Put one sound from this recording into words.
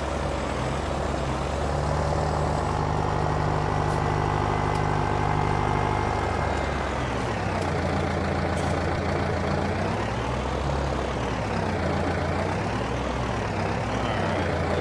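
A tractor engine rumbles steadily and rises and falls in pitch.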